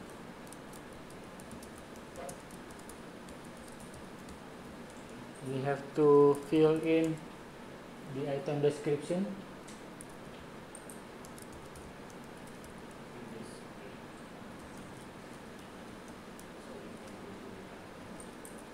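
Keyboard keys click softly as someone types.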